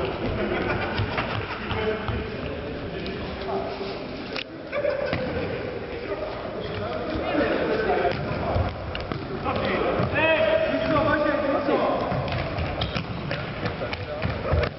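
A ball thuds as it is kicked in a large echoing hall.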